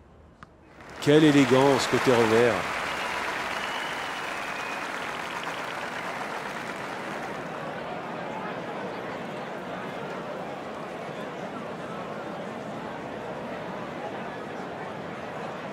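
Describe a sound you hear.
A crowd applauds and cheers steadily.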